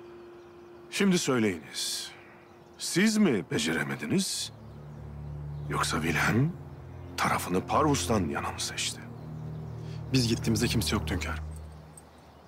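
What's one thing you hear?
A middle-aged man speaks sternly and slowly, close by.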